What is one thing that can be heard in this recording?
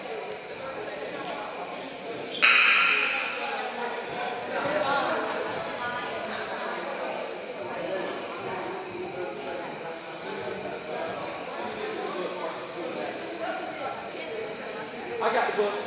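A crowd of girls chatters loudly in a large echoing gym.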